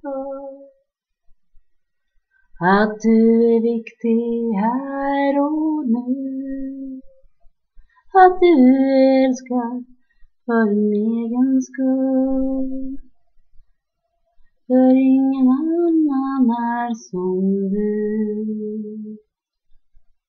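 A young woman sings softly close to a webcam microphone.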